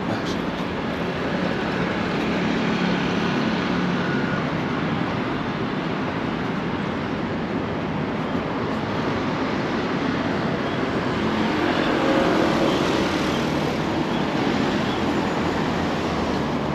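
Traffic rumbles steadily along a busy road outdoors.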